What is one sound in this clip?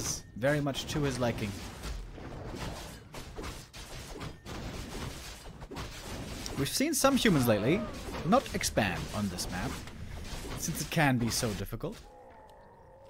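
A young man commentates excitedly through a microphone.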